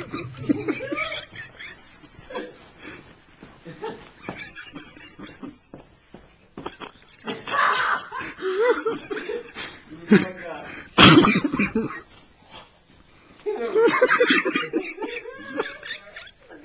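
A man stamps his feet on a carpeted floor in a quick dance.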